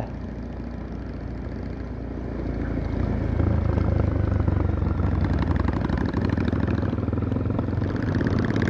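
Tyres crunch on a rough gravel road.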